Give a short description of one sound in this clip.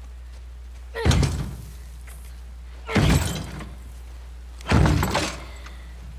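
A young woman bangs hard on a door several times.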